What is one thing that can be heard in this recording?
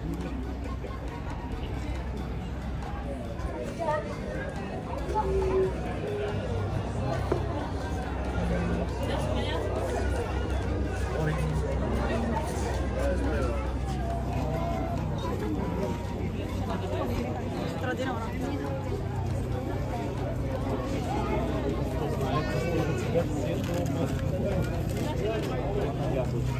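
A crowd of men and women chatters nearby, outdoors.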